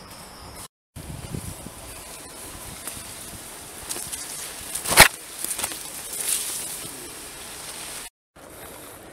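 Leaves and grass rustle as hikers push through.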